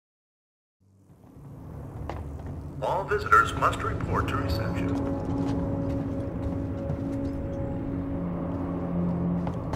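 A low mechanical drone hums in a large hall.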